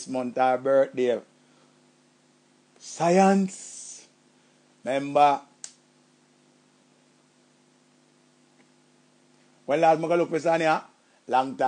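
A middle-aged man speaks cheerfully in short bursts into a close microphone, with pauses between.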